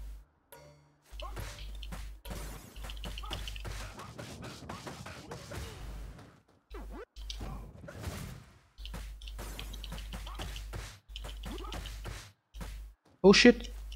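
Punches and impacts thud in quick succession.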